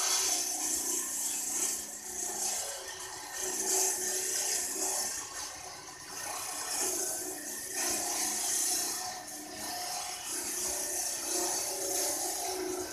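A walk-behind concrete floor saw cuts a joint in a concrete slab.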